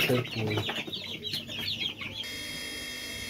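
Chicks chirp rapidly close by.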